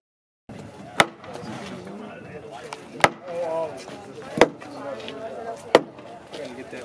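A taut line snaps sharply against wood several times.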